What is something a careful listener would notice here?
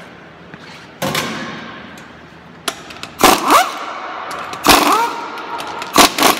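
An impact wrench whirs in loud bursts.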